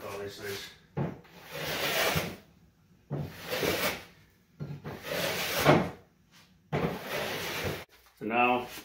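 A hand plane shaves wood in long, rasping strokes.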